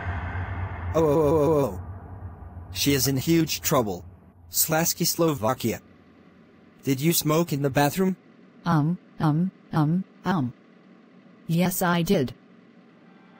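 A young man shouts angrily in a synthetic, computer-made voice.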